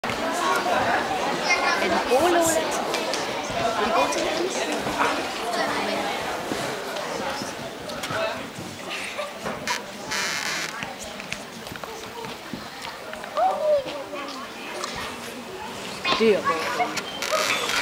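A group of young people murmur and talk quietly.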